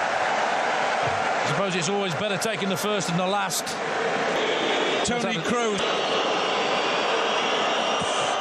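A large stadium crowd roars and whistles steadily.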